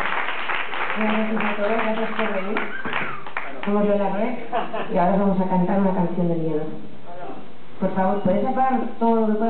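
A young woman speaks calmly into a microphone over loudspeakers.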